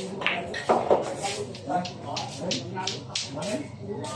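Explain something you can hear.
Pool balls knock together on the table.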